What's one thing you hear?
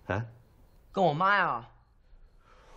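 A young man answers in surprise, close by.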